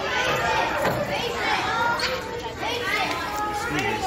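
Children chatter and call out in an echoing room.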